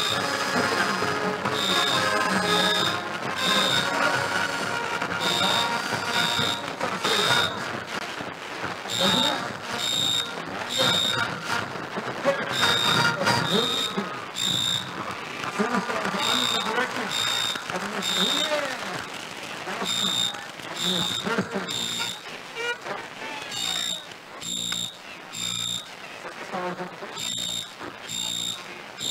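Drums and cymbals crash in a steady, repeating beat.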